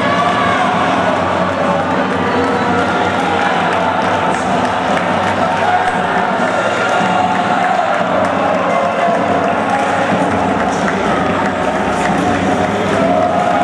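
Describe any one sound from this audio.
A crowd claps their hands.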